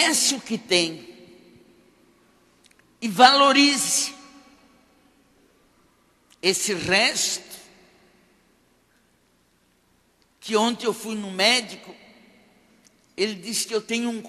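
An elderly woman speaks slowly and with feeling into a microphone, in bursts with pauses, heard in a reverberant hall.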